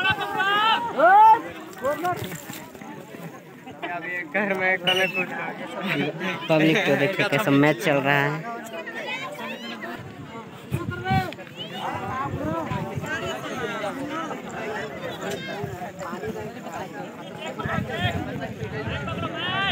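A crowd of young men shouts and cheers nearby outdoors.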